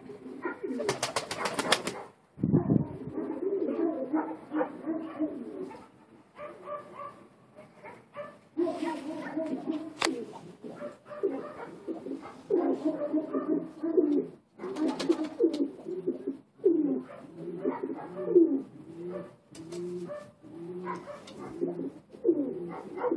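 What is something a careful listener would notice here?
Pigeons coo softly and steadily close by.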